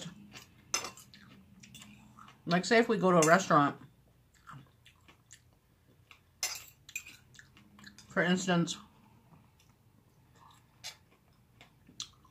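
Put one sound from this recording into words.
A fork clinks and scrapes on a plate.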